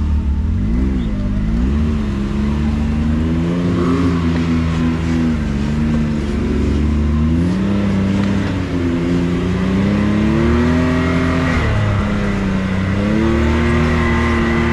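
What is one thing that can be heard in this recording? Tyres roll and splash over a muddy, bumpy dirt track.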